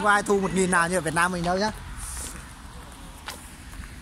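Footsteps tap on wet pavement.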